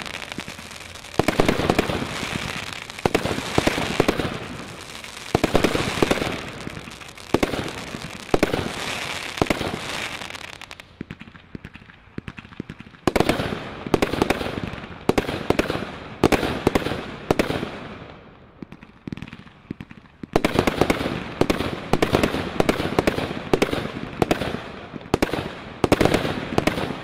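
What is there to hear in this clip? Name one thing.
Firework bursts crackle and pop overhead.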